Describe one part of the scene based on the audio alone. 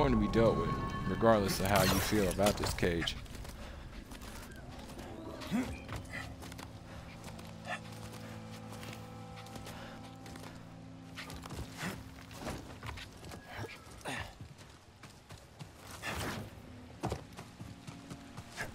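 Footsteps thud on rocky ground.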